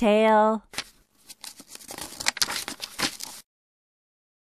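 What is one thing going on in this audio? A paper page rustles as a hand turns it.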